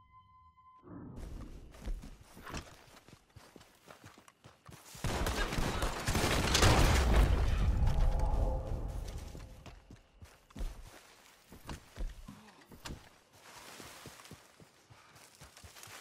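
Footsteps crunch and rustle through dry brush.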